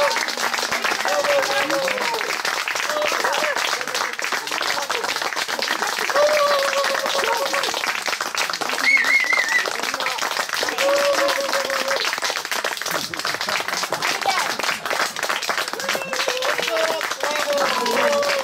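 A group of young people sings together.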